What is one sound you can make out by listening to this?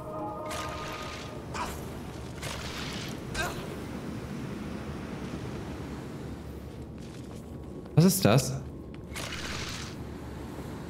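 Magic spells whoosh and crackle in a game.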